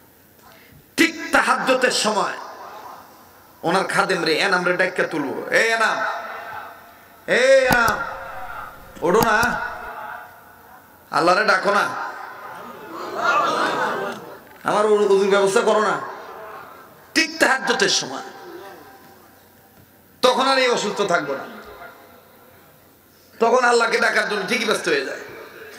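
A man preaches forcefully into a microphone in bursts, with echo in a large hall.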